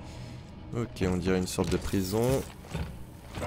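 A man speaks briefly into a close microphone.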